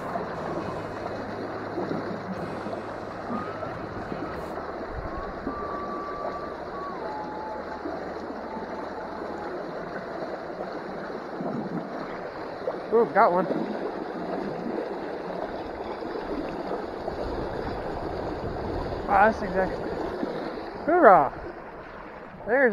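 A small stream rushes and gurgles over stones nearby.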